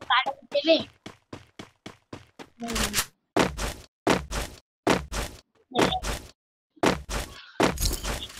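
Footsteps run in a video game.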